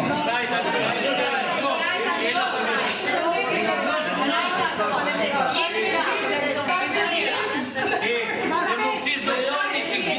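A group of people chatter and cheer around a table.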